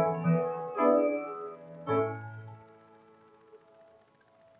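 An organ holds a final chord that fades away.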